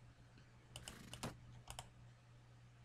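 Short interface clicks sound as menu options are chosen.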